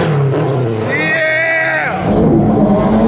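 A man laughs loudly close by.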